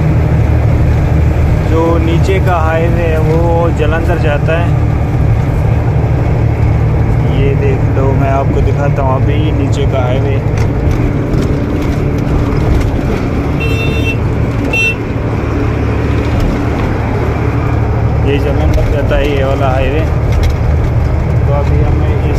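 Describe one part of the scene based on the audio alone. A truck engine rumbles steadily at speed.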